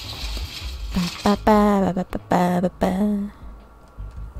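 A cat meows loudly several times.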